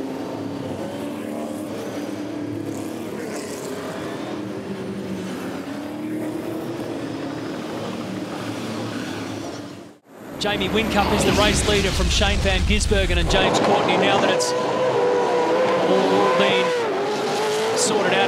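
Racing car engines roar past in a pack.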